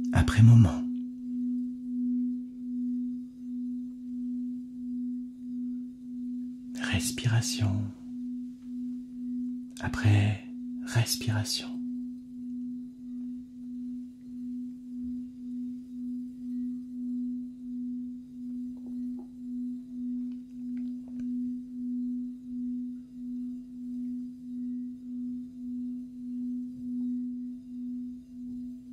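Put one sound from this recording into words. A crystal singing bowl rings with a steady, gently pulsing hum.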